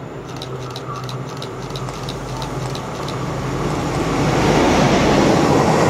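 A diesel locomotive hums as it approaches and passes.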